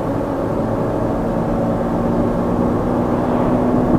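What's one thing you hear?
A truck rushes past in the other direction.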